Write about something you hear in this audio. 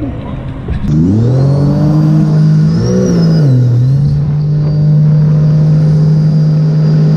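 A jet ski engine revs up and then roars steadily.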